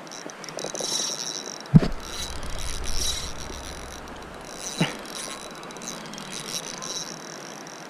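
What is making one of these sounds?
A fishing reel winds with a soft whirring.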